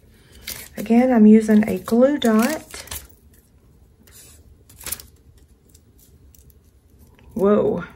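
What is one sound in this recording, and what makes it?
Adhesive tape peels noisily off a roll.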